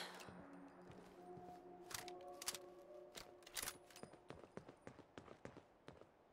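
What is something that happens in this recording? Footsteps crunch over rubble.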